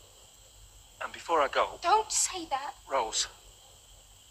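A young woman speaks tensely, close by.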